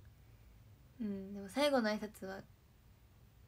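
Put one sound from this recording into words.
A young woman speaks briefly, close up.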